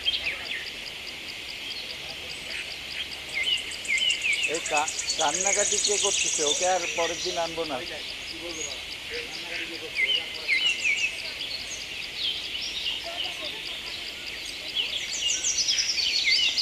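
Elephants walk slowly through tall grass.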